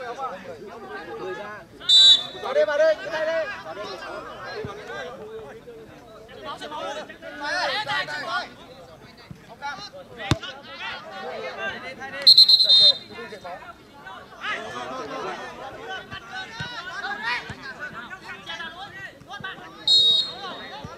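Men shout to each other across an outdoor field.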